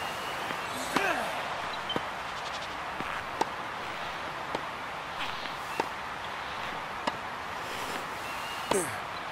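Tennis balls are struck back and forth with sharp pops.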